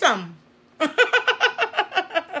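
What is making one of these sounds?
A middle-aged woman laughs loudly.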